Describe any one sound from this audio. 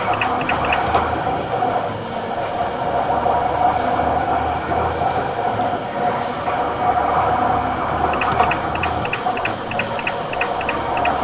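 Tyres hum on a highway.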